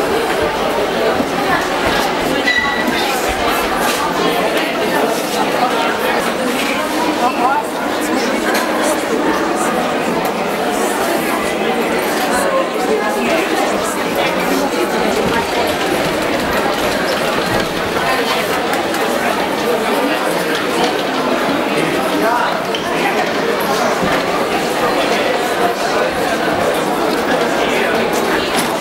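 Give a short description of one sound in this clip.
A crowd murmurs and chatters indoors.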